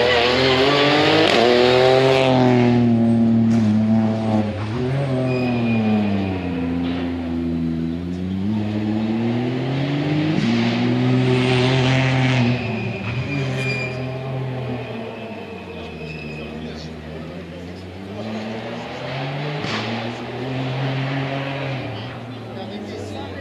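A rally car engine roars past at high revs and then fades into the distance, revving up and down as it changes gear.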